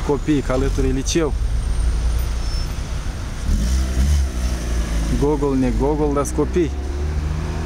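Men talk calmly nearby outdoors.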